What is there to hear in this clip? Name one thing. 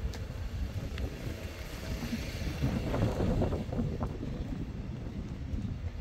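Footsteps scuff on concrete outdoors.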